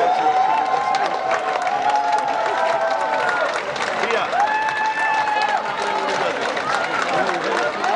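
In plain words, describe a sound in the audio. A brass band plays a loud, lively tune.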